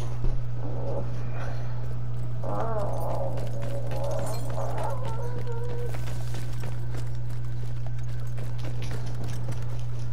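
Footsteps run over cobblestones.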